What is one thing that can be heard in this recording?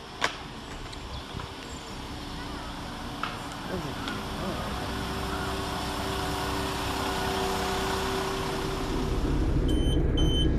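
A diesel train rumbles as it pulls into a station, its engine droning steadily.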